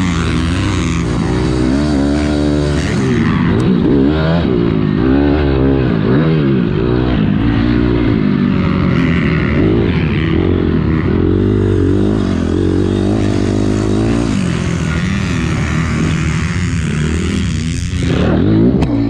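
A dirt bike engine revs hard and roars up close, rising and falling with the gears.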